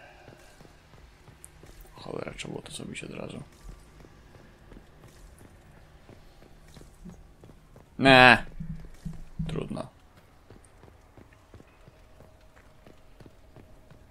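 Footsteps tread on a stone floor.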